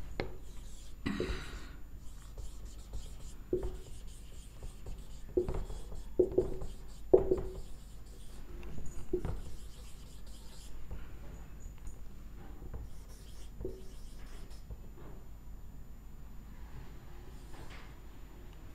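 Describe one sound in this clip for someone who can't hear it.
A marker squeaks and scratches on a whiteboard.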